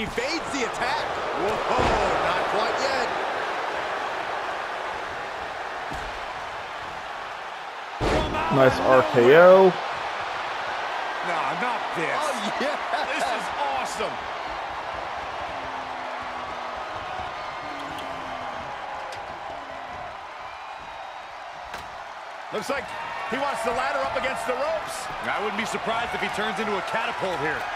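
A large crowd roars and cheers throughout in a big echoing arena.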